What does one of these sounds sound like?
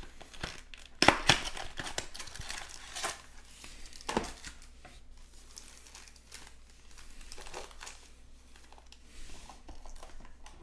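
Card packs tap and clatter onto a table.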